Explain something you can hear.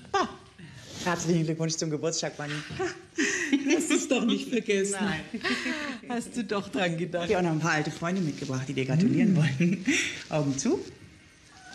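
A second woman answers warmly, close by.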